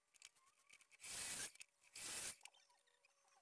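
A mitre saw cuts through wood with short bursts.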